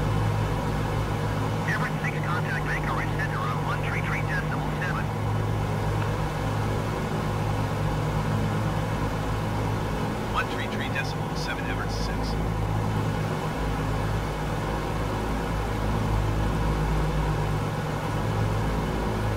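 Aircraft engines drone steadily throughout.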